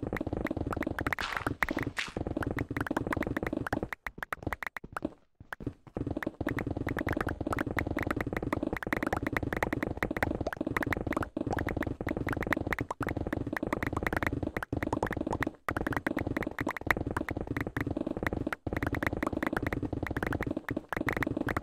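Stone and earth blocks crunch rapidly as they are dug out.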